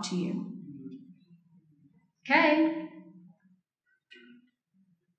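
A middle-aged woman speaks with animation into a microphone, heard through a loudspeaker in a large room.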